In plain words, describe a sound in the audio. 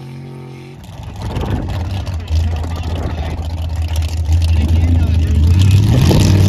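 An off-road buggy engine rumbles and revs.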